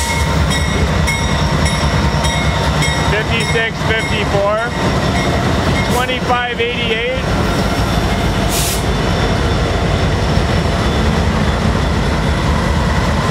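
Diesel locomotives rumble loudly as they pass close by.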